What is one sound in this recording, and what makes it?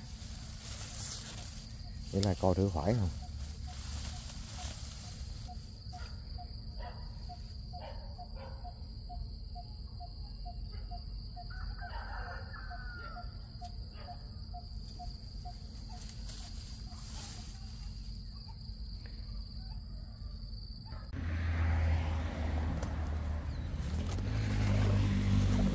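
Dry grass rustles close by.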